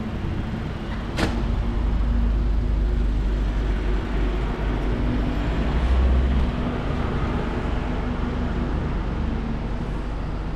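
A truck engine idles close by with a low steady rumble.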